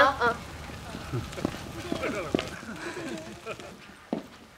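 Sheep bleat in the distance.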